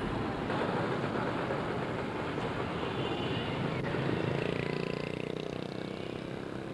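Motor scooters buzz past nearby.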